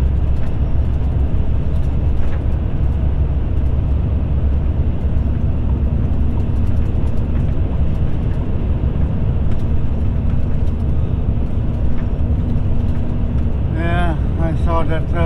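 A car's engine hums steadily from inside the car.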